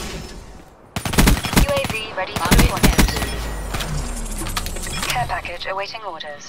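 Explosions boom loudly with deep rumbling.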